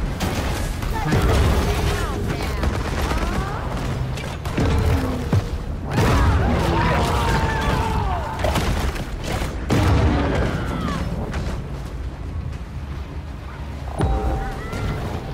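Loud crashes and impacts ring out as a boat is attacked.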